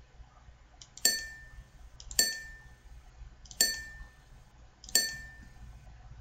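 A short bright chime rings each time an answer is clicked.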